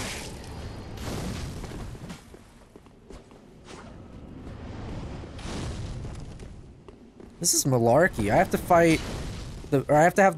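A burst of fire roars.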